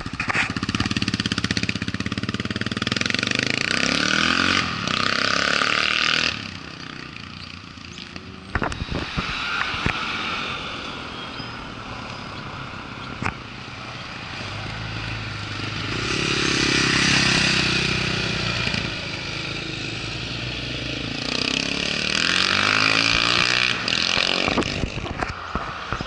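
A single-cylinder dual-sport motorcycle accelerates hard past, then away.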